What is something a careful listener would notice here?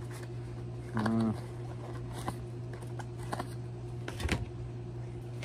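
A cardboard cigarette pack crinkles and taps as hands handle it.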